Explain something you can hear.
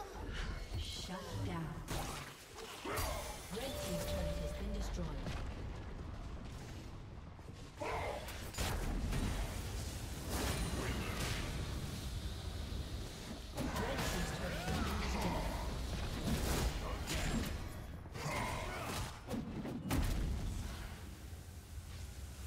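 Game spells and hits crackle and boom in a fight.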